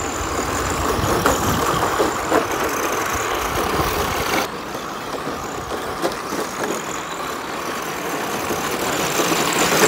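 Small electric motors whine as model cars race past.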